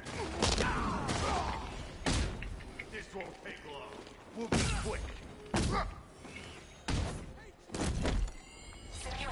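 Heavy punches and kicks land with hard thuds.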